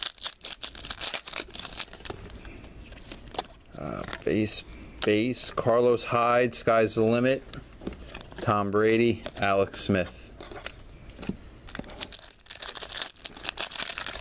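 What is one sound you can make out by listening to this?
A plastic wrapper crinkles close by.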